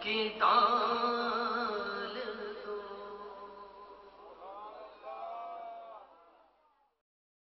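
A man sings a melodic recitation through a microphone and loudspeakers, fading out at the end.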